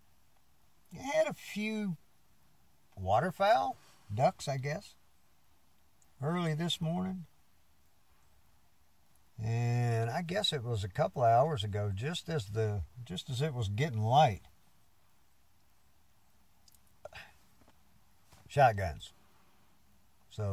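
An elderly man speaks calmly, close by, in short bursts with pauses.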